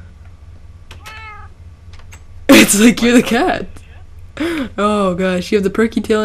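A cat meows repeatedly.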